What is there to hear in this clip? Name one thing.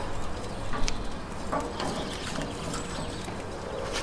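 Tongs clink against a metal grill.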